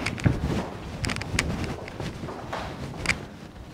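A man's footsteps approach on a hard floor.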